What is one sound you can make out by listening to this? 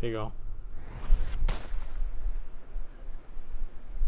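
A rifle fires a single sharp shot.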